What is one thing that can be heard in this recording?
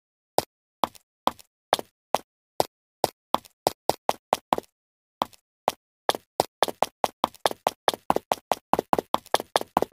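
Footsteps tap on a hard floor, speeding up into quick running steps.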